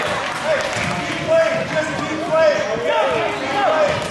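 A man in the crowd shouts loudly to the players.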